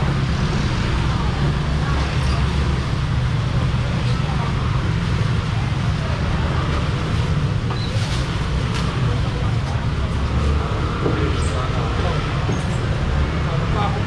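A young man calls out loudly to customers.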